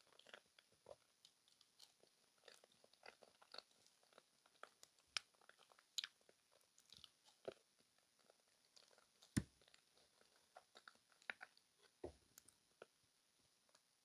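A woman chews food with soft, wet mouth sounds close to a microphone.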